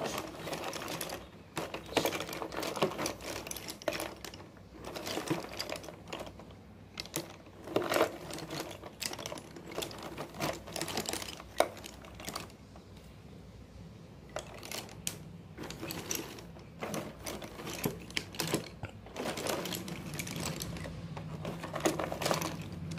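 Wooden sticks clatter and rattle as a hand rummages through them.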